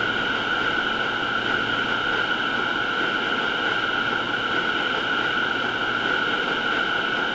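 A train rumbles steadily along a track.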